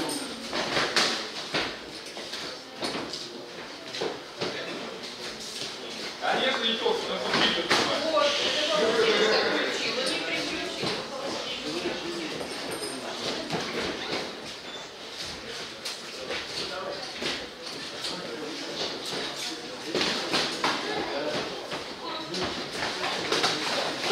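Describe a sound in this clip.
Gloved punches and kicks thud against bodies in a large echoing hall.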